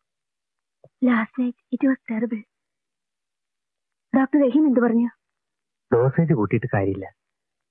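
A young woman speaks, sounding worried, close by.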